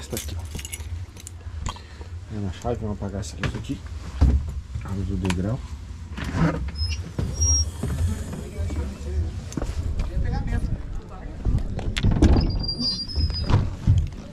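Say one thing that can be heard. A bus engine rumbles steadily while the bus drives.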